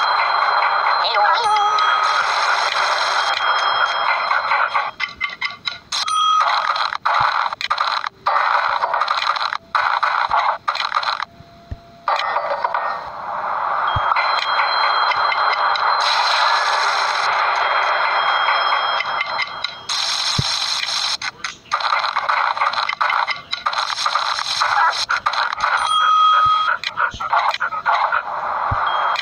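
Light, cheerful game music plays steadily.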